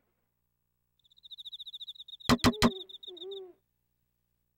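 Rapid electronic blips tick as game text scrolls out.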